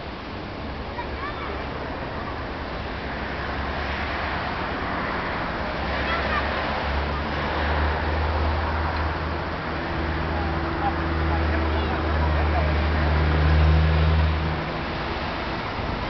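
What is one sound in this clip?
A large ship's engine drones low and steady, growing louder as it passes close by.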